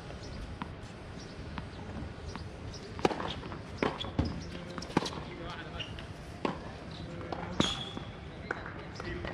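Tennis shoes squeak on the court.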